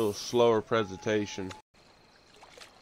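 A fishing lure splashes into calm water.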